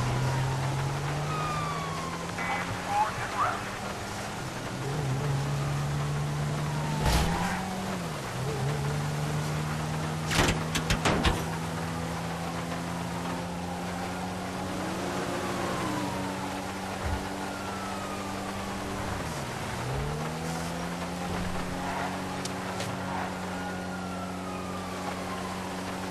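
A car engine hums steadily, rising and falling as it shifts gears.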